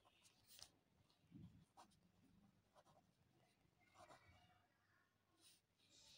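A pen scratches softly on paper as someone writes.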